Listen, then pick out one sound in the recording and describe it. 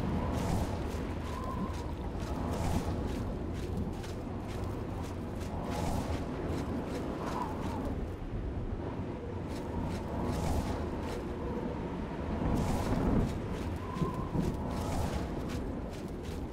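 A spell whooshes and crackles as it is cast.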